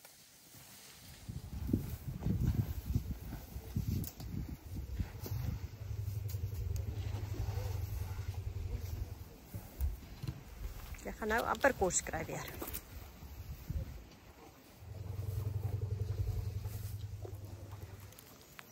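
Elephants shuffle and tear at dry grass nearby.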